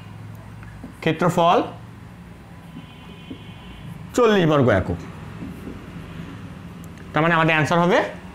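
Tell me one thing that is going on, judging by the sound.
A young man speaks in short, clear phrases close by.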